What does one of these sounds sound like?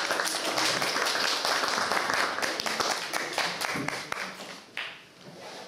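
An audience claps loudly in a room.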